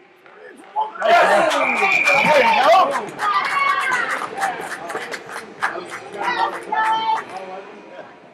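A crowd cheers and shouts loudly in an echoing rink.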